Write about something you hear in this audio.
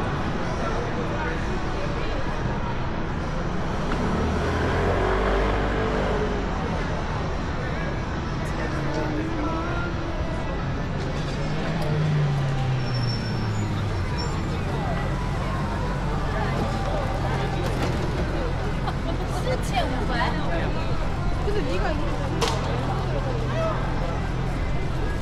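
Traffic hums steadily in an outdoor street.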